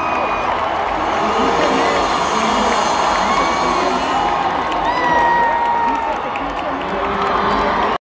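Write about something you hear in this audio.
Loud music plays through big speakers.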